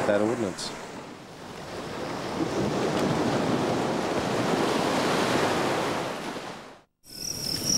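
Water surges and splashes around rocks.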